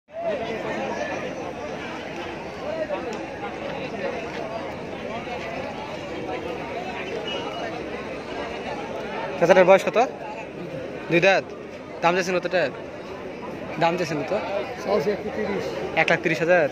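A crowd of people chatters outdoors throughout.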